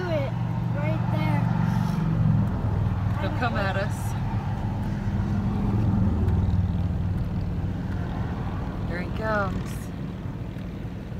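A car engine rumbles steadily from inside a moving vehicle.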